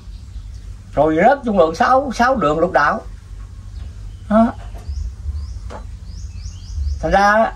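An elderly man speaks with animation, close to a microphone.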